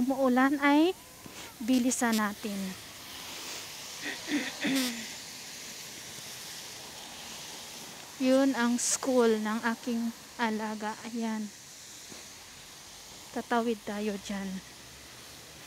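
A woman talks with animation while walking outdoors.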